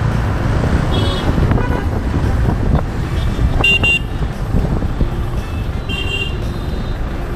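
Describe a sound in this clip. Vehicle horns beep in street traffic.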